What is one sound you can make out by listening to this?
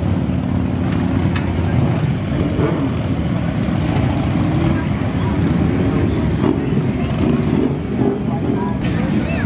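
A motorcycle engine rumbles loudly and revs as it pulls away.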